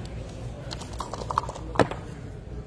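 Dice rattle in a cup being shaken.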